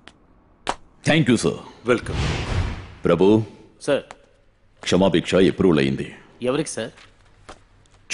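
A man speaks firmly and loudly, close by.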